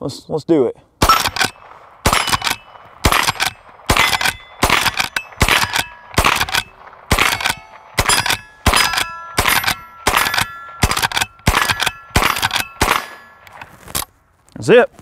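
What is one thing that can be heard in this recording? Metal targets clang when hit.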